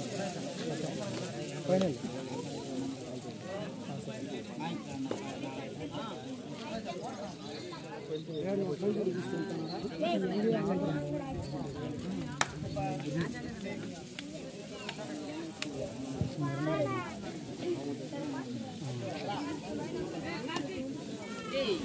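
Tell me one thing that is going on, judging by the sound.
A large outdoor crowd chatters and shouts.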